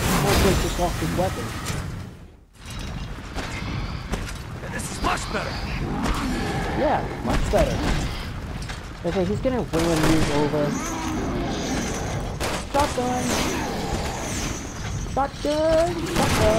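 Game gunfire and explosions boom and crackle.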